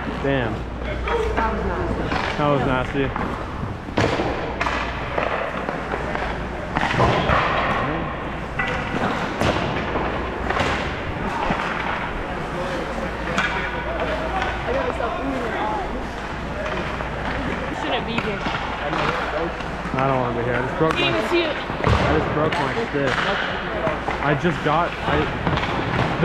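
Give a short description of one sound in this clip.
Young boys talk and call out nearby, echoing in a large hall.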